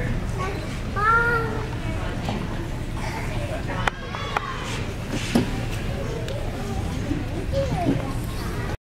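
Young children speak and sing in a small echoing hall.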